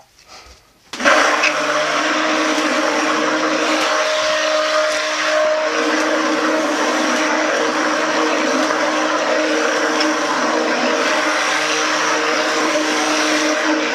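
An immersion blender whirs loudly and steadily, churning liquid.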